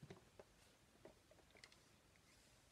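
A man sips through a straw.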